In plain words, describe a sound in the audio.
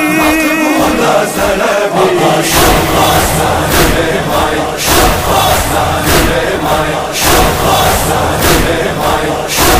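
A man sings a mournful chant close to a microphone.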